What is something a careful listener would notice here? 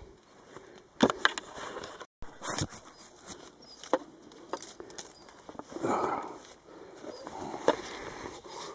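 Bamboo leaves rustle as someone brushes past.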